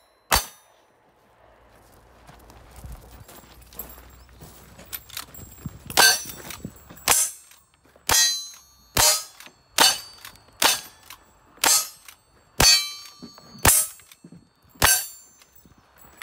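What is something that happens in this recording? Gunshots ring out in a rapid series outdoors, each with a sharp crack and short echo.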